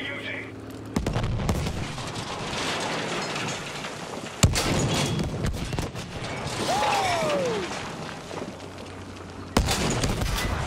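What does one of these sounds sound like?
A heavy gun fires with loud booming blasts.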